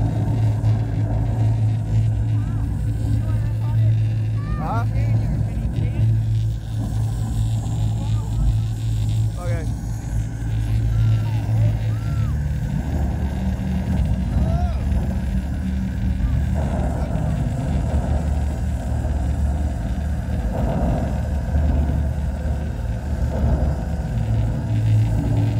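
Loud, booming music plays over speakers outdoors.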